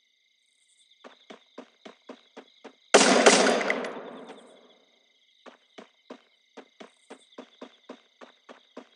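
Footsteps thud steadily across a wooden floor and then onto grass.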